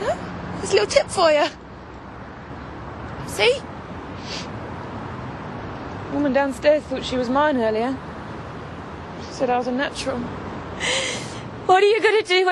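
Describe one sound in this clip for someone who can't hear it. A young woman sobs and cries loudly nearby.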